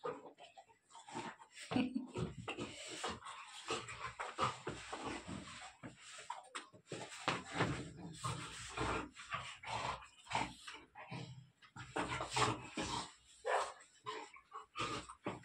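Small dogs growl and grumble playfully while wrestling.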